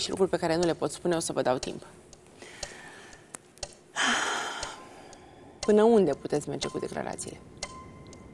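A young woman speaks with emotion into a microphone, pausing between phrases.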